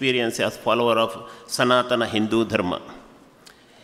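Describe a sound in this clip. A man speaks through a microphone and loudspeakers in a large hall.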